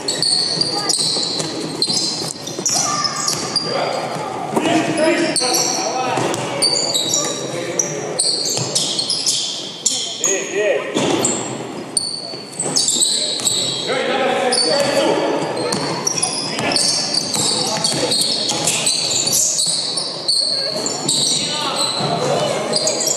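Sneakers squeak sharply on a hard court, again and again.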